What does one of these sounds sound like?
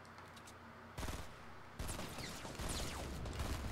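A shotgun fires a loud blast.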